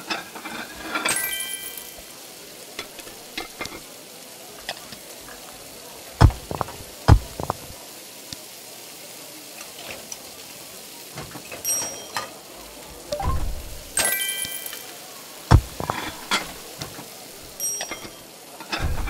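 A short bright game chime rings as furniture is placed.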